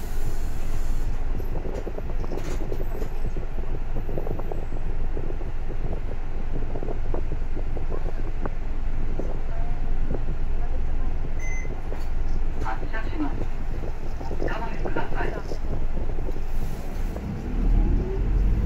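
A bus engine idles with a low, steady rumble, heard from inside.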